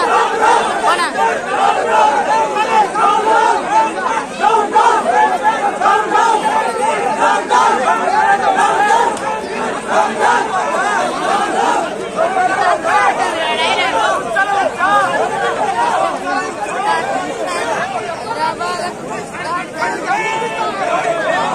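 A large crowd of men shouts and clamours outdoors.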